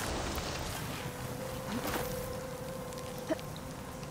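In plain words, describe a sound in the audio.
Foliage rustles and brushes.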